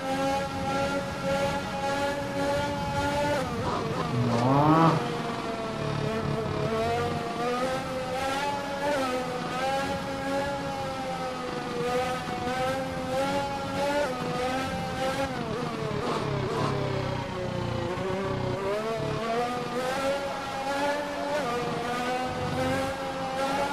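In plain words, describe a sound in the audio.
A racing car engine whines steadily, rising and dropping in pitch as it shifts gears.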